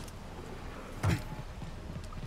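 Boots land with a heavy thud.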